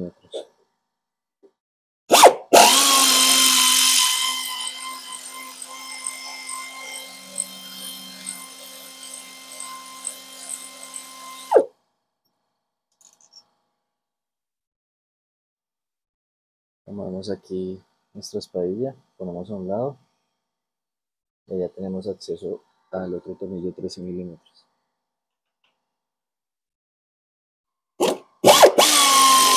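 A power ratchet whirs in short bursts.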